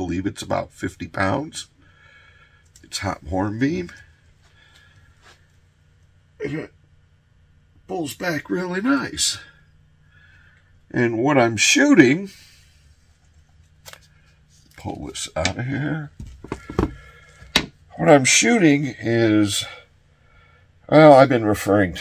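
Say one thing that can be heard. A middle-aged man talks calmly and clearly, close to a microphone, in pauses.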